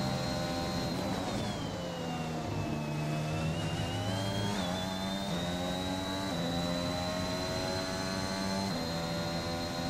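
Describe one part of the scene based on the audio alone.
A Formula One car engine drops in pitch as it downshifts under braking, then climbs through the gears.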